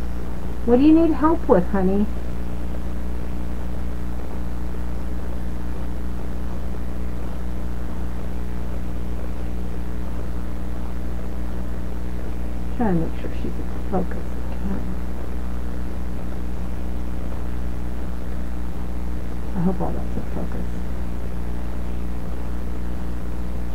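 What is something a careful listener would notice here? An electronic device hums steadily.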